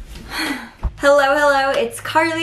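A young woman speaks cheerfully and close by.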